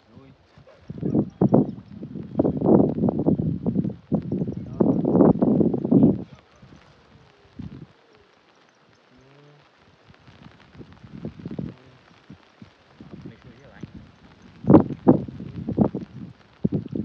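A man talks with animation close by outdoors.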